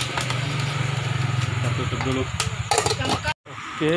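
A metal lid clanks onto a pot.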